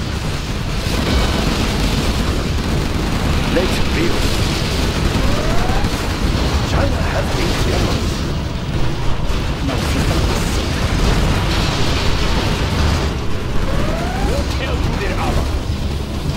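Explosions boom and crackle in a battle.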